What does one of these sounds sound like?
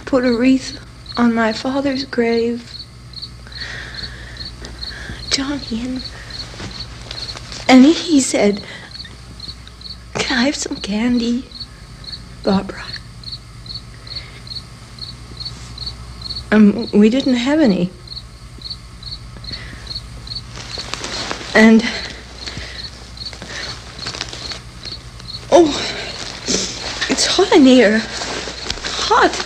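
A young woman speaks haltingly and emotionally nearby.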